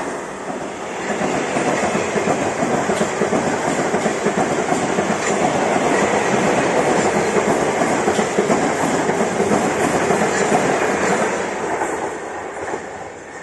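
A second train rumbles steadily past close by.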